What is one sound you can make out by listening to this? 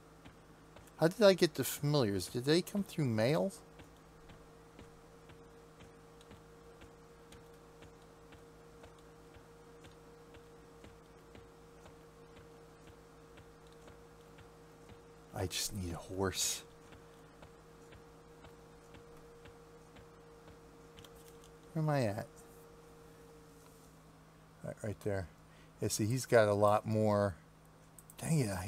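A middle-aged man talks into a microphone in short bursts with pauses between them.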